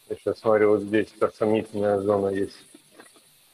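A man speaks clearly through a microphone in short phrases.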